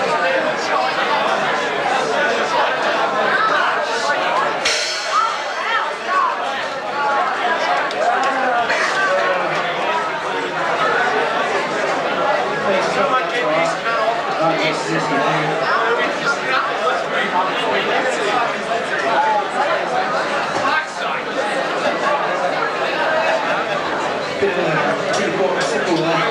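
A crowd of people chatters and shouts close by.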